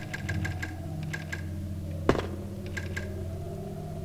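A telephone handset clatters as it is lifted.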